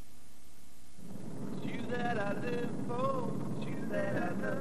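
A car engine rumbles while driving.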